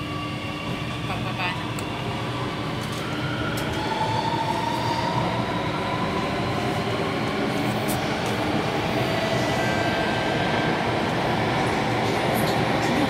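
A train motor whines with a rising pitch.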